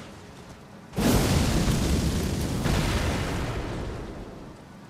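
A blade swings with a loud whooshing blast.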